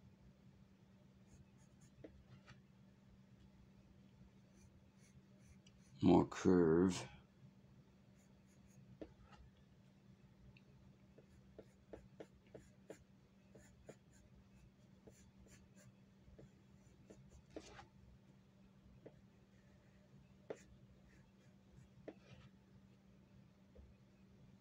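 A pencil scratches lightly across paper in short strokes.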